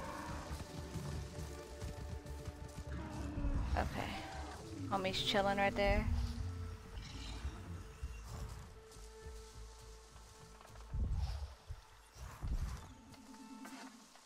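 Footsteps rustle through dense grass and leaves.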